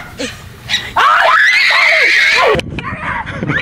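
A young girl screams loudly.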